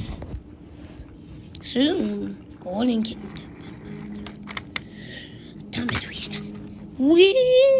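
A small toy train motor whirs as it rolls along plastic track.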